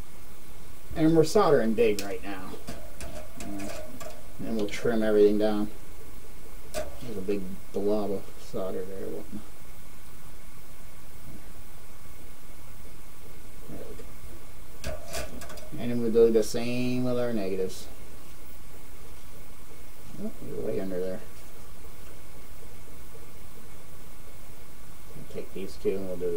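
A man talks calmly, close by, in short phrases.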